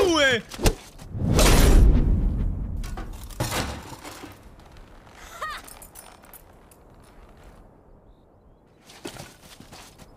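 A sword whooshes and strikes a wooden training dummy.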